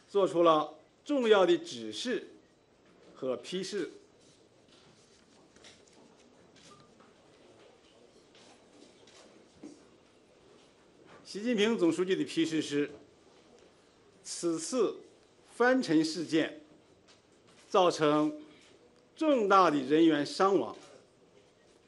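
An elderly man speaks calmly into microphones, pausing now and then.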